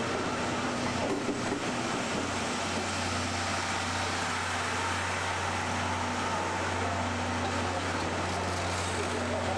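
A steam locomotive hisses steadily close by.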